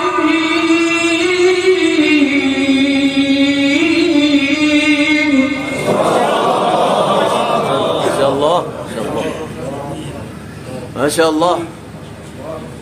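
A man chants in a long, melodic voice through a microphone, echoing in a large hall.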